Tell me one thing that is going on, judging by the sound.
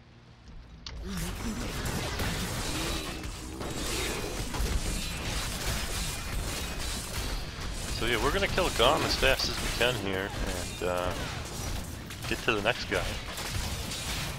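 Heavy blows thud against a large monster.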